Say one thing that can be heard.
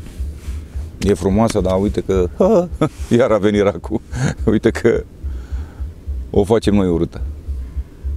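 A middle-aged man talks calmly and close up into a clip-on microphone.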